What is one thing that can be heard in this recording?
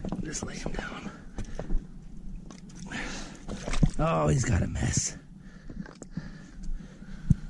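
A large fish slides over wet rocks into shallow water.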